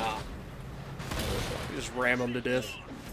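A shell explodes with a loud boom.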